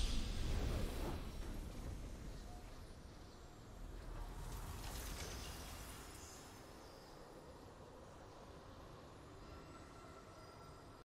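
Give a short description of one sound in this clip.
A deep, booming victory fanfare swells and slowly fades.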